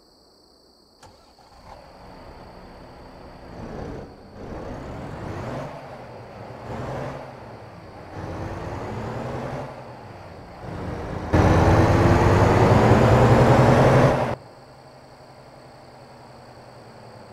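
A truck engine revs up and shifts through gears.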